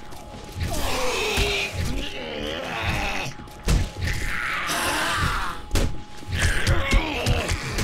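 A heavy club thuds repeatedly against a body.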